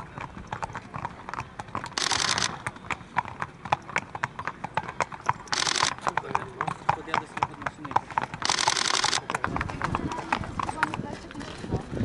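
Horses' hooves clop at a walk on a paved path.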